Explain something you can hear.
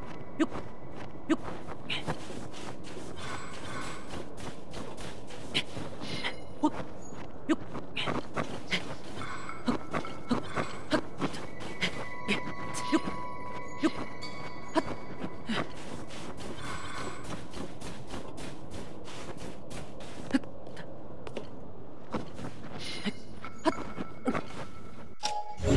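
Footsteps crunch steadily through snow.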